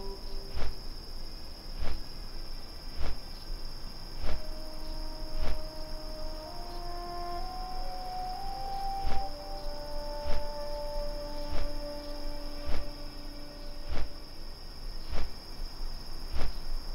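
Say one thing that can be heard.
Large wings flap with deep, regular whooshing beats.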